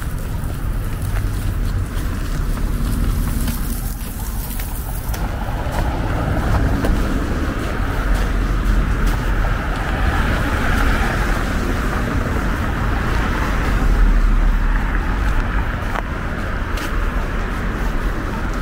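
Cars drive past on a wet road.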